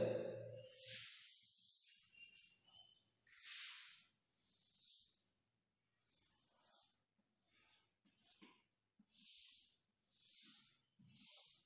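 Chalk scratches and taps on a blackboard.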